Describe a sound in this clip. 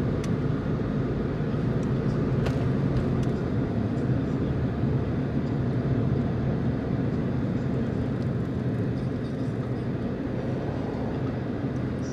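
A car's engine and tyres rumble steadily from inside the car on a highway.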